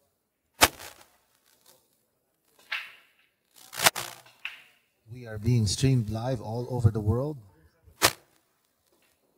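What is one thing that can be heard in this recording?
Pool balls clack sharply against each other.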